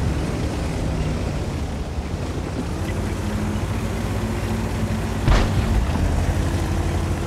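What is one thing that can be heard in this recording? A heavy tank engine rumbles steadily as the tank drives.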